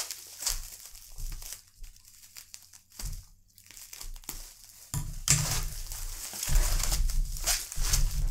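Bubble wrap is torn open with loud crackling.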